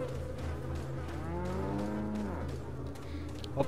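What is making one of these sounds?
A cow moos low and long.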